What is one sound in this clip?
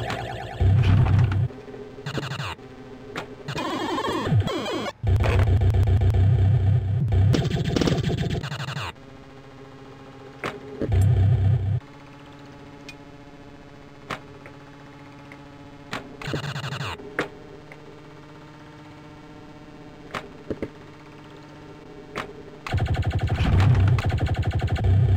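Electronic pinball sounds chime, beep and clunk.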